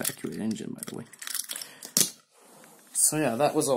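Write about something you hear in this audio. A small plastic toy train clicks and rattles as it is handled.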